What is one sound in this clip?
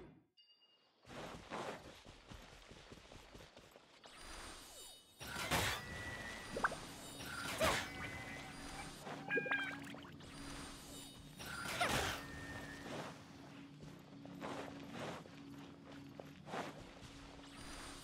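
Footsteps patter on grass and stone.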